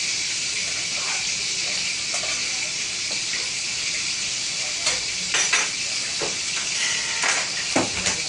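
Metal utensils clink and scrape against a pan.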